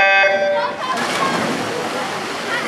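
Swimmers dive and splash into the water.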